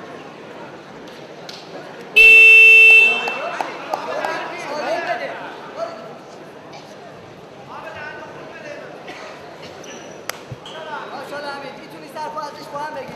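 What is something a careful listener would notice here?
A large crowd murmurs and cheers in a big echoing hall.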